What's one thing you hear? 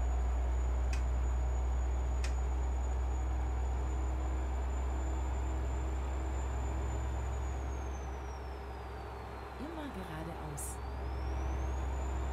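Tyres roll with a steady hum on the road.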